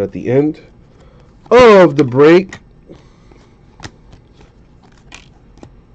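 Trading cards rustle and flick against each other in someone's hands.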